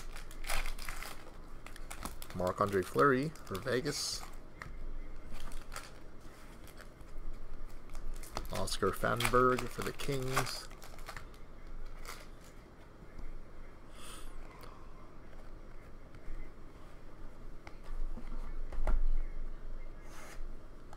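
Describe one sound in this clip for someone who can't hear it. Trading cards rustle and slide as they are handled.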